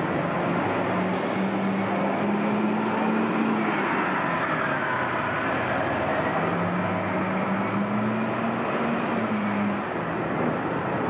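A bus engine hums and whines as the bus pulls away.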